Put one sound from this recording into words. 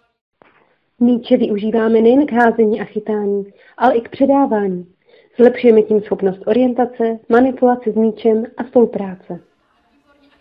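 A woman speaks clearly and with animation, close by.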